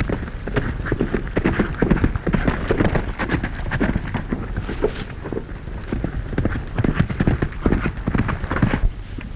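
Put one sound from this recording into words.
Horse hooves gallop on a dirt track.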